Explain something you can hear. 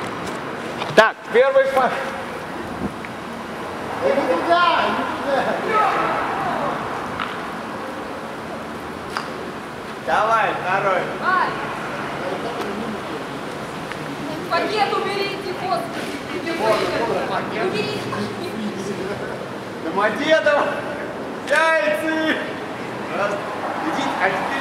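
Young adults talk and laugh nearby outdoors.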